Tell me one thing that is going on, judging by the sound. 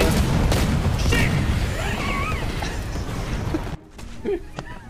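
An explosion booms and fire roars with a loud low rumble.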